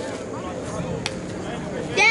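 A metal bat cracks against a softball.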